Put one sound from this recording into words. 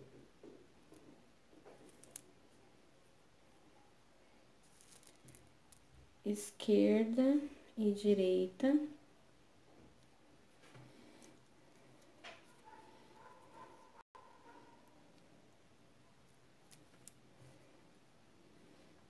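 Glass beads click together as they are threaded onto nylon thread.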